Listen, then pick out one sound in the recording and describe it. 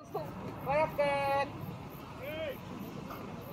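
Young players shout calls across an open field.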